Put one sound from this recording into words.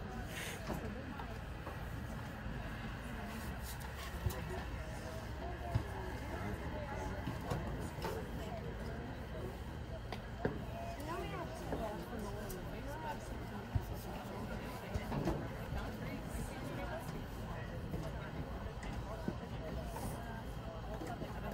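Many voices of young players and spectators chatter and call out outdoors.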